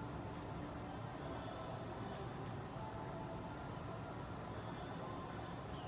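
A video game plays a short, bright musical jingle through a television speaker.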